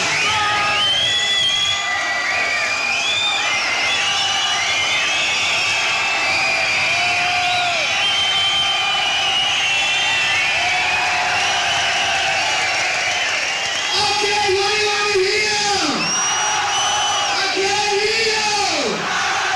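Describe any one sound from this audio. An electric guitar plays a wailing solo with bending, sliding notes.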